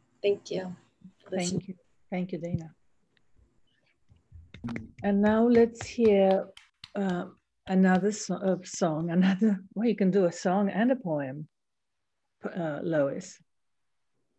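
A middle-aged woman talks calmly over an online call.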